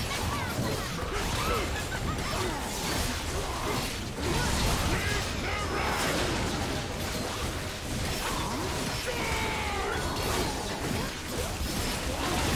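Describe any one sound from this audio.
Magic blasts and clashing battle effects crackle and boom in quick succession.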